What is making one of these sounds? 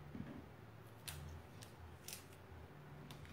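Paper crinkles and rustles under hands.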